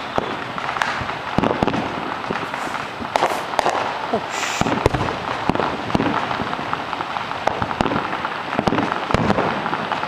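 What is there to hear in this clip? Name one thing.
Fireworks pop and crackle in the distance, with sharp bangs.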